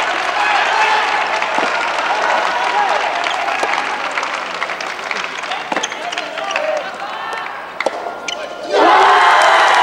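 A ball is struck with rackets back and forth in a large echoing hall.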